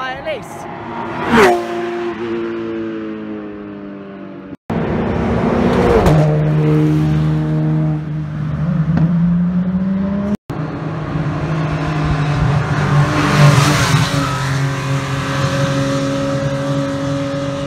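A race car engine roars past at high speed, dropping in pitch.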